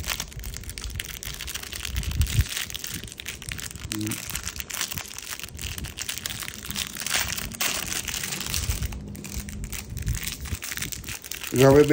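A plastic bag crinkles and rustles as hands unwrap a small part.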